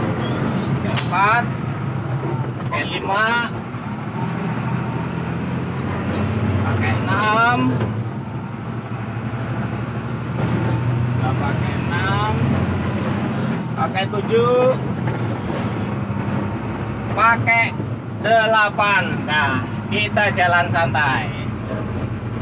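A middle-aged man talks casually nearby.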